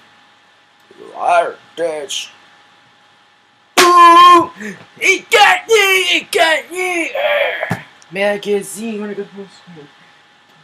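A young man sings loudly and with energy close by.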